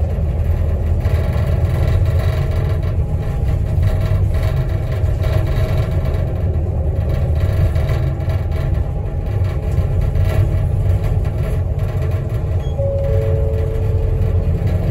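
A vehicle's engine hums and rumbles steadily from inside.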